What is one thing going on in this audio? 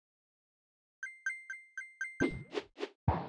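Bright coin pickups chime in quick succession.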